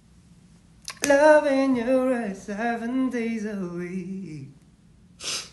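A young man sings a short line of melody, close to the microphone.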